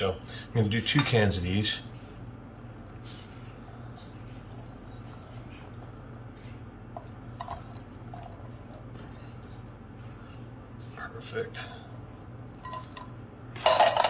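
Beans slide and patter from a can into a glass dish.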